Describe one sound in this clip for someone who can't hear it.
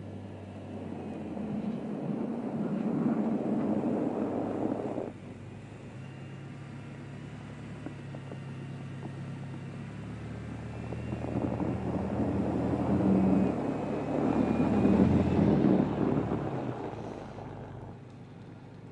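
Tyres crunch and slide through snow.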